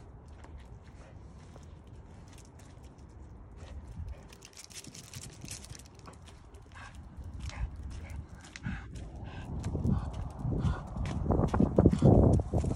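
A dog's paws patter on the ground.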